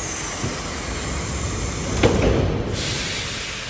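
Subway train doors slide shut with a thump.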